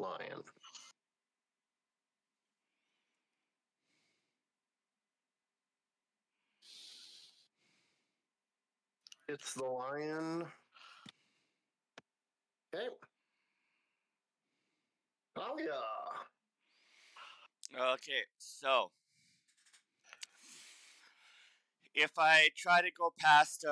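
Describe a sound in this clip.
A middle-aged man talks into a headset microphone in short bursts, with pauses.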